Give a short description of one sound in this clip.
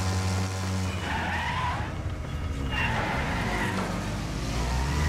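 Car bodies crash and crunch together.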